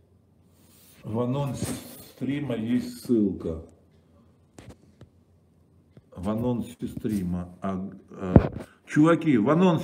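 A middle-aged man speaks with animation, close to a phone's microphone.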